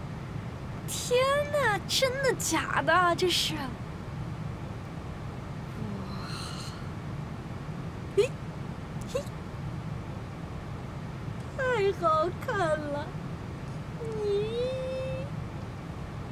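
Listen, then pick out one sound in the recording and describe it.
A young woman exclaims excitedly close by.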